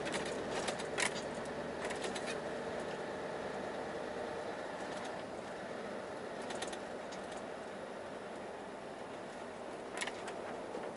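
A truck engine hums steadily from inside the cab while driving.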